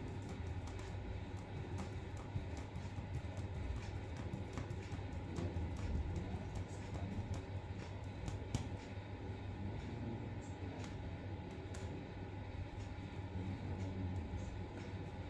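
A needle taps and scratches lightly against taut fabric.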